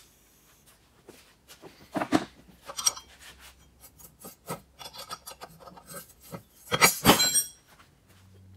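A wrench clinks and clicks against metal.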